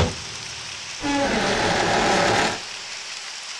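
A heavy door creaks open slowly.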